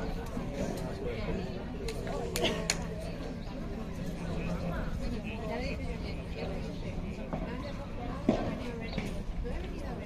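Rackets hit a ball back and forth with sharp pops.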